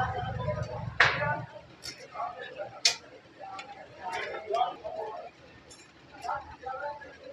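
Metal skewers clink and rattle together.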